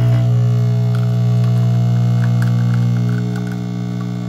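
Coffee trickles into a glass.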